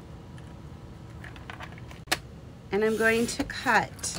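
A paper trimmer blade slides along and cuts through card.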